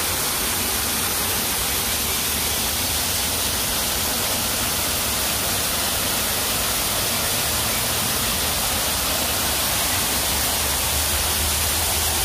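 A waterfall rushes and splashes steadily close by.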